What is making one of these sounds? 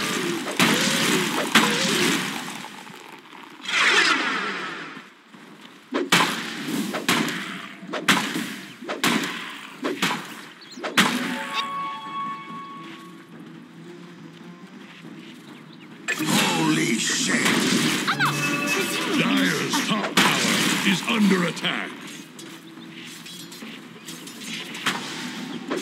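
Magic spells burst and crackle in a video game fight.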